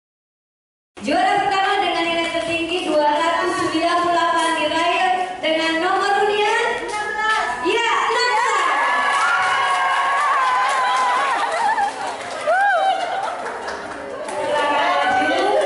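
A group of women sing together.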